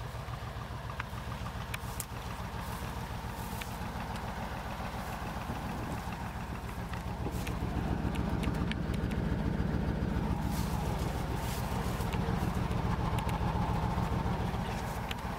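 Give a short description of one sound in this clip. A heavy truck engine rumbles and pulses steadily, growing louder.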